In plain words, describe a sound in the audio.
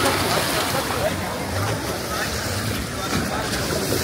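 Water splashes around people wading in the sea.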